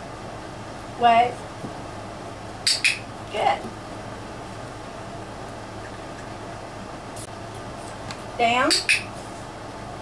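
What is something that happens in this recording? A puppy whines and yelps in short, high cries.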